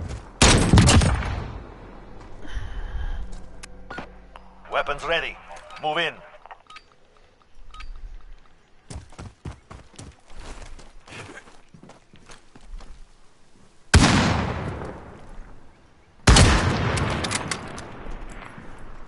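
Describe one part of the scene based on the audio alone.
A rifle fires loud single shots that ring out and fade.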